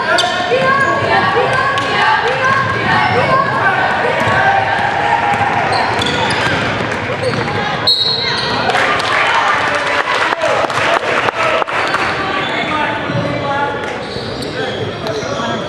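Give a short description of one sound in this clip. Young girls shout and call out in a large echoing hall.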